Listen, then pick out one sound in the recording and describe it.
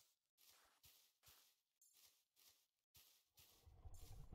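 A game character's footsteps shuffle on soft sand.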